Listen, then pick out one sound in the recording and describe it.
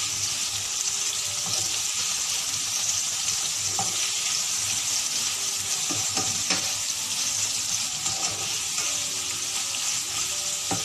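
A spatula scrapes and clatters against a pan.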